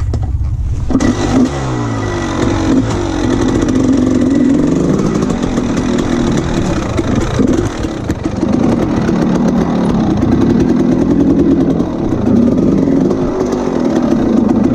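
A motorbike engine roars steadily as the bike rides over rough ground.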